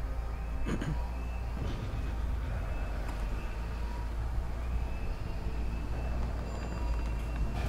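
An elevator hums low and steadily as it rises.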